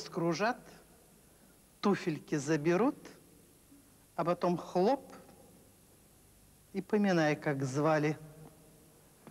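A woman sings in a strong, clear operatic voice, in short phrases.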